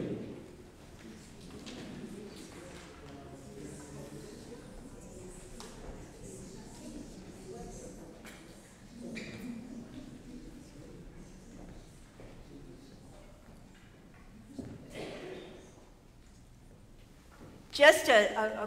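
A crowd of men and women murmur and chat softly in an echoing hall.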